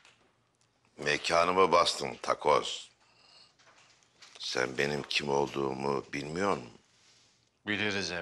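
A middle-aged man speaks slowly and menacingly, close by.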